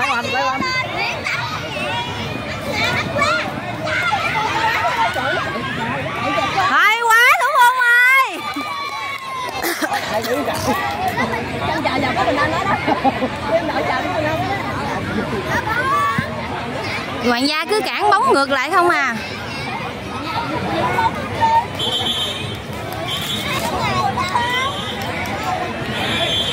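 Children shout and call out while playing football outdoors.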